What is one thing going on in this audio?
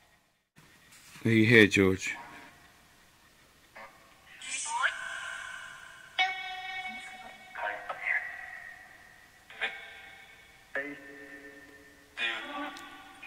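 A small electronic box gives out choppy bursts of static and broken voice fragments.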